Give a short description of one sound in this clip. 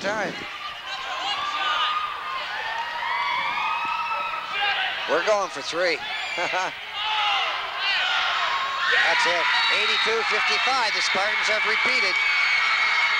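A crowd cheers and roars in a large echoing hall.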